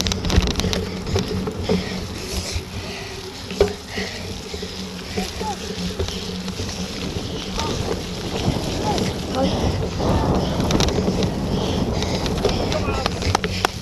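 Wind buffets outdoors.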